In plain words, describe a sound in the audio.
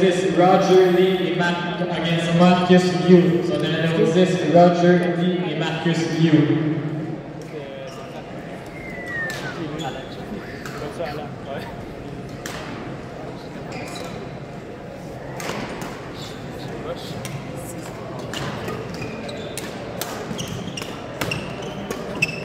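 Rackets hit a shuttlecock back and forth in a large echoing hall.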